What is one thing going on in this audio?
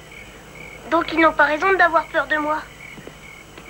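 A young boy speaks nearby.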